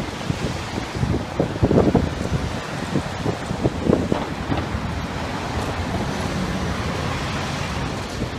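A fire engine's engine roars as it pulls through an intersection.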